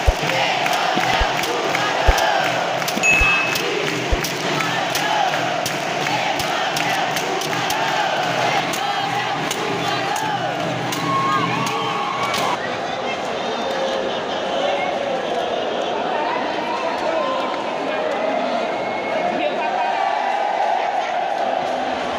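A large crowd cheers and chatters loudly in a big echoing arena.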